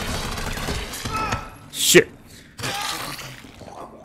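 A zombie growls and snarls up close.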